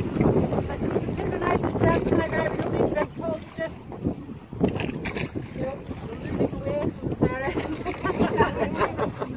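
Wooden oars creak and knock against a boat.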